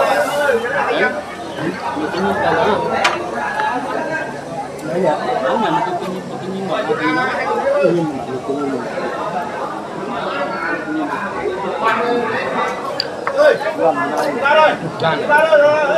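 Several middle-aged men talk with animation close by.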